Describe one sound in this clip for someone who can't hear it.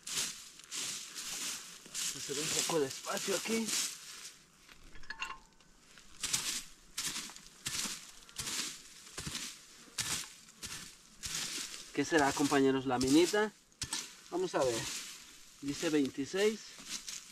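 A small hand tool scrapes and digs into dry soil.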